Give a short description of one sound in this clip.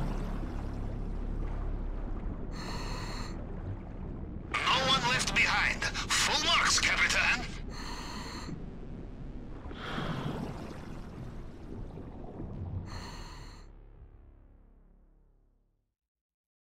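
Water rumbles, muffled and low.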